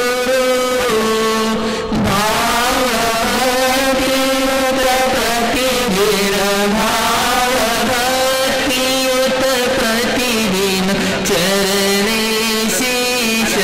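A man sings a slow, steady chant through a microphone.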